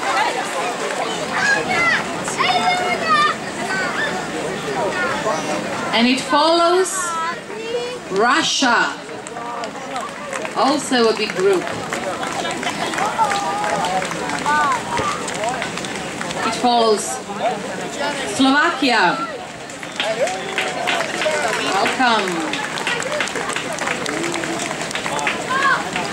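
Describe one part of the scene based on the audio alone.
A crowd of men and women chatters outdoors.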